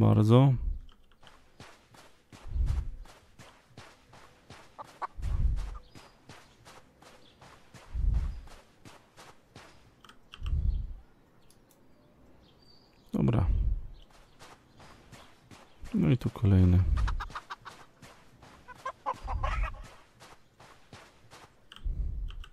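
Footsteps tread steadily on a dirt path.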